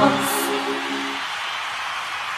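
A man sings into a microphone on a loudspeaker.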